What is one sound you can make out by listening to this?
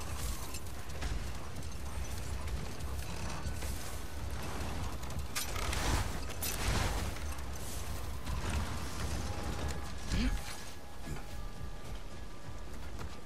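Wind howls steadily outdoors.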